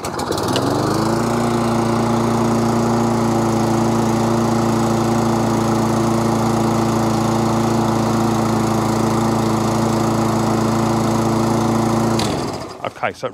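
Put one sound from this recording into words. A lawn mower engine starts and runs at a loud, steady roar, then cuts out.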